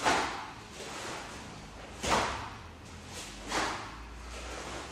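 Sharp snapping swishes of a cloth uniform come with fast kicks and strikes, with a short echo.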